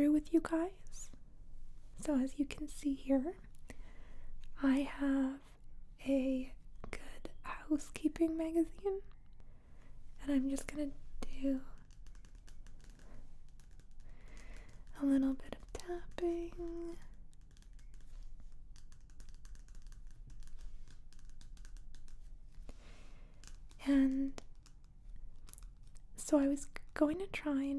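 Fingernails tap and scratch softly on a glossy magazine cover.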